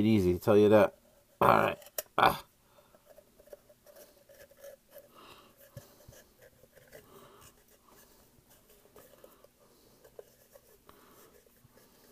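A plastic cap scrapes softly as it is twisted on a tube.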